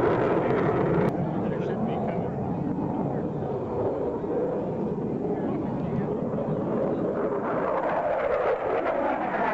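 A jet engine roars loudly overhead with a steady rumble.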